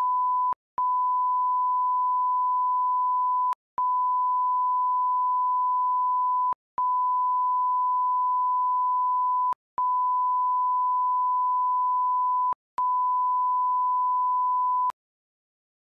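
A steady high test tone sounds in long stretches broken by brief gaps.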